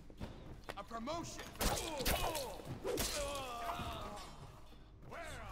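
A man speaks gruffly and menacingly up close.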